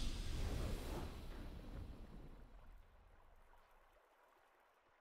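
A triumphant game fanfare booms and slowly fades away.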